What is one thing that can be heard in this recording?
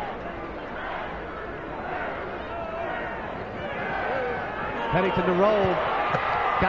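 A stadium crowd cheers and roars, growing louder.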